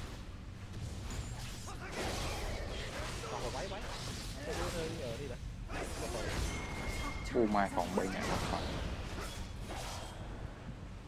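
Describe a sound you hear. Game combat effects clash and whoosh.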